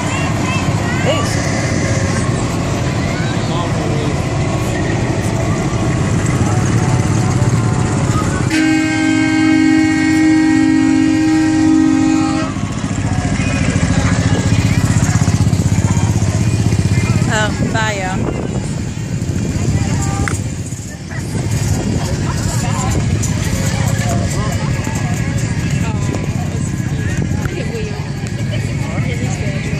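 A crowd of people chatters and calls out outdoors.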